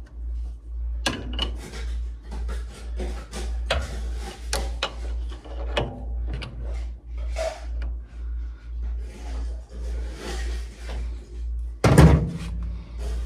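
A metal wrench clinks and scrapes against a lathe tool post.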